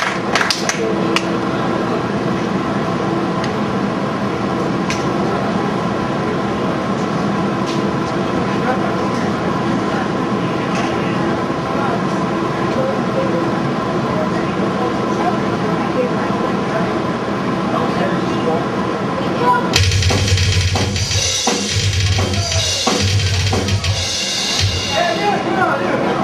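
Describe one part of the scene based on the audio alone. A metal band plays loudly live in an echoing hall.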